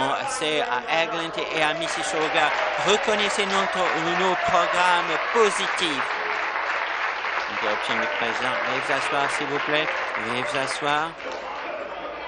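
A crowd of people applaud and cheer in a large echoing hall.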